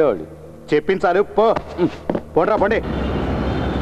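A middle-aged man speaks forcefully, shouting.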